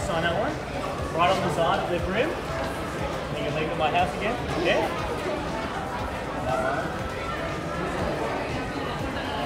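A young man talks cheerfully up close.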